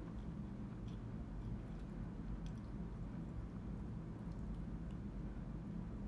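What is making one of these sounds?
A young woman chews food softly.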